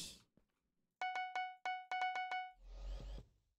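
Short chiming clicks sound from a game shop menu.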